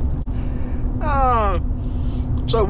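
A middle-aged man laughs.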